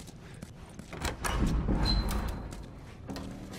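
A heavy metal door creaks and swings open.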